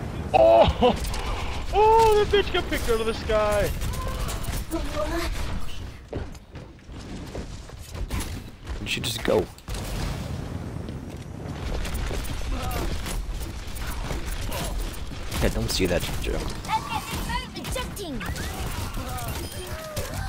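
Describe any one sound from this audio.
Rapid gunfire blasts in quick bursts.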